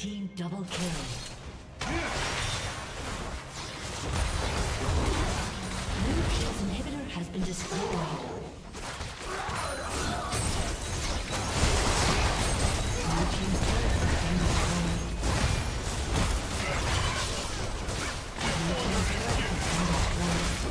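Game spell effects crackle and burst during a fight.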